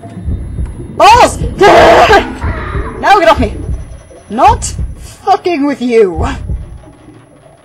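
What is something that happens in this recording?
A young woman exclaims with animation close to a microphone.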